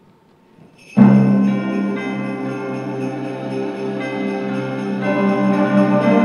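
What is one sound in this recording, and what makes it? A large band starts playing loud sustained chords in an echoing hall.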